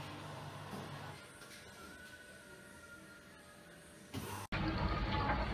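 A washing machine tumbles laundry with a soft, low rumble.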